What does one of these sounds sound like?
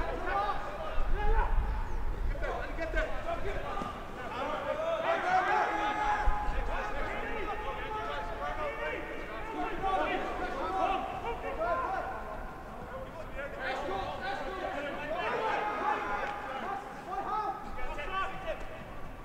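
Men shout to one another across an open field.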